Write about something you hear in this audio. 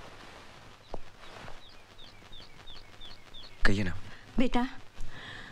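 An elderly woman speaks with feeling, close by.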